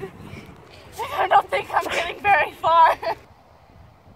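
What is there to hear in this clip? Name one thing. A young woman speaks breathlessly close by.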